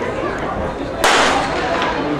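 A starting pistol fires once with a sharp crack.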